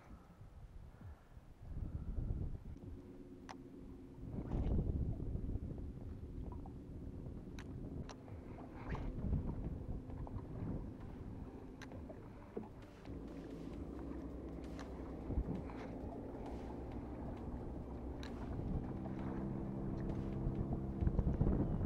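Wind buffets the microphone outdoors on open water.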